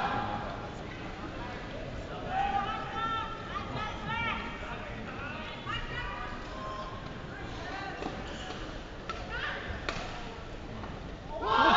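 A shuttlecock is struck sharply by rackets, back and forth.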